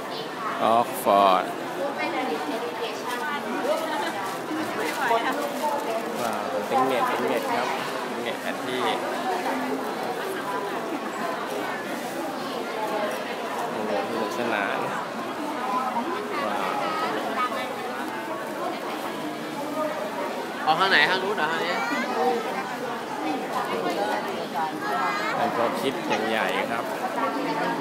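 A large crowd chatters steadily all around in a large echoing hall.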